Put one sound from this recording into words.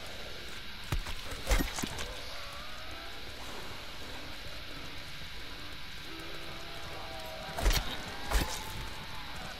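Gunshots bang sharply a few times.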